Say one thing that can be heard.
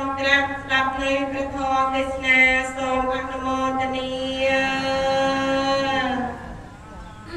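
A woman chants in a steady, drawn-out voice through a microphone.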